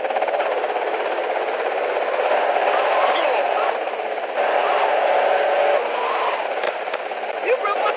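Tyres screech as a car skids around a corner.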